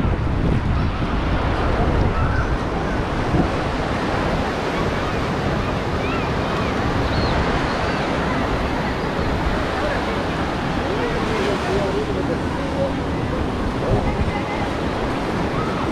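Small waves wash gently onto the sand.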